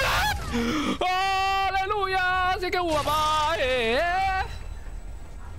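A young woman screams in fright.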